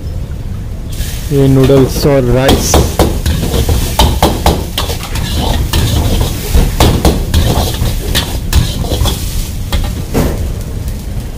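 A metal ladle scrapes and clanks against a wok.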